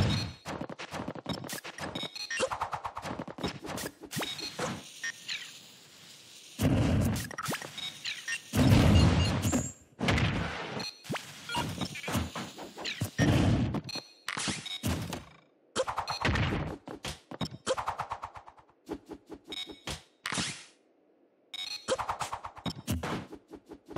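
Sword slashes and hits crack in quick bursts.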